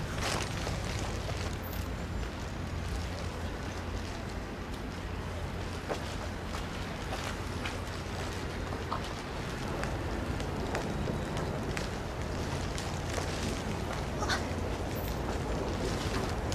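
High heels click on a hard path as a woman walks.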